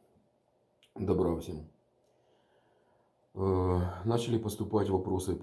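A middle-aged man speaks calmly and close up.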